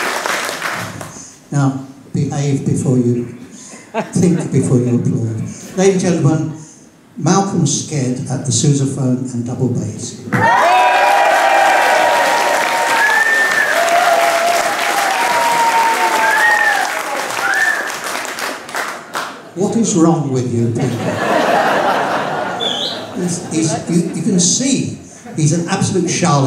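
A man speaks calmly through a microphone, heard over loudspeakers in a large hall.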